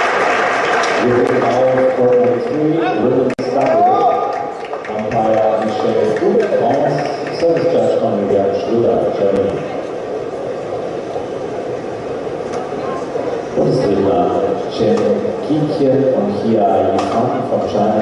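A racket strikes a shuttlecock with sharp taps.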